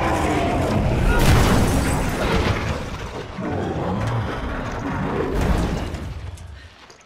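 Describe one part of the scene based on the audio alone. Heavy crashes and thuds ring out.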